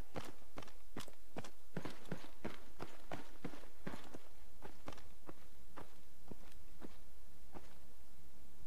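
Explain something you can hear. Footsteps thud on metal stairs and hard ground.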